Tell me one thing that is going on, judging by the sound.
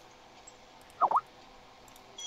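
A short electronic swoosh sounds.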